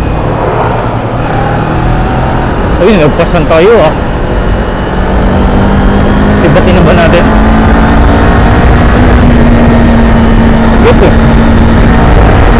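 A parallel-twin sport bike engine hums while cruising.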